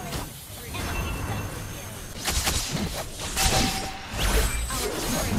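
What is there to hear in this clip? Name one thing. Video game combat sound effects clash and burst.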